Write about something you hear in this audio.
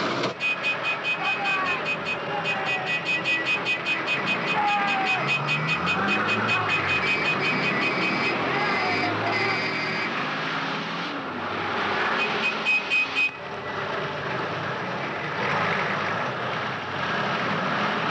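Heavy truck engines rumble as lorries drive past on a road.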